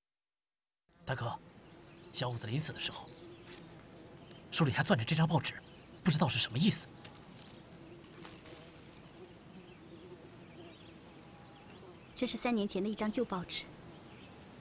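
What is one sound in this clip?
A man speaks calmly and quietly nearby.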